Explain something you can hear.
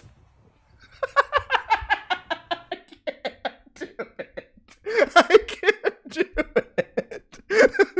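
A man laughs loudly and repeatedly close to a microphone.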